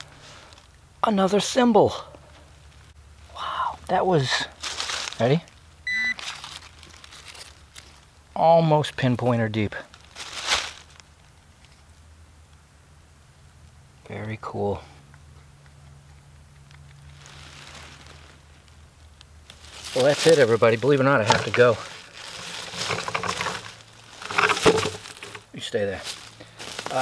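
A man talks calmly and closely.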